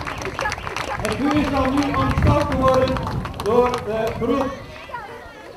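A crowd of men and women sings loudly together.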